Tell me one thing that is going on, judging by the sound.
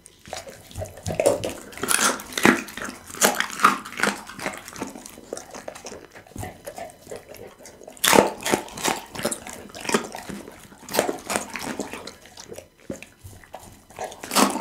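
A dog chews and crunches raw meat and bones up close.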